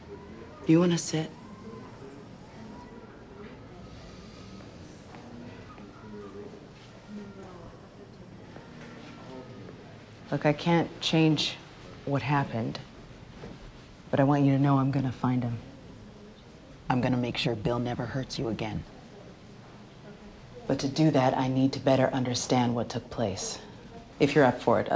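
A woman speaks in a low, tense voice close by.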